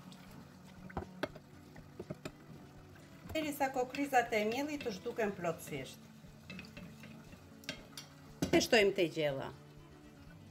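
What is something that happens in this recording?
A metal spoon stirs and clinks against a ceramic bowl.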